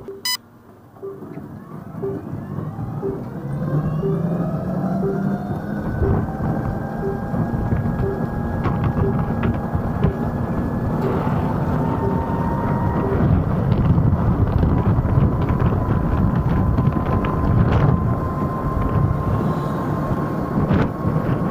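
An electric scooter motor whines, rising in pitch as it speeds up.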